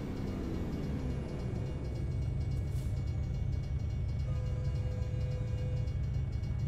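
A truck engine rumbles low and steady, winding down at first.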